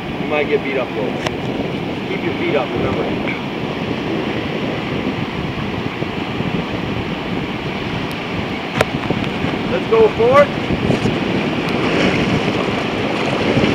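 River water rushes and splashes steadily around a raft.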